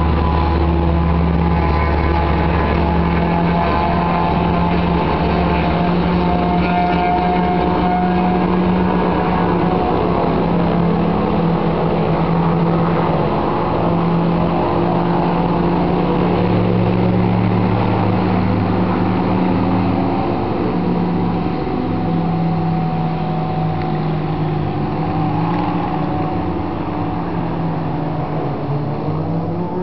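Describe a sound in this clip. A light aircraft's piston engine drones as the plane taxis.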